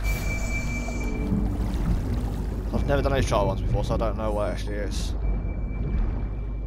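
A low, steady underwater rumble murmurs throughout.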